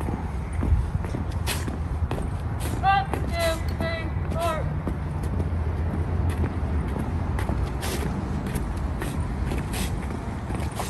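Boots tramp in step on pavement outdoors.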